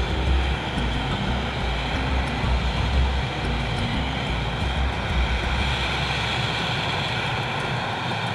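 A helicopter engine whines loudly and steadily nearby.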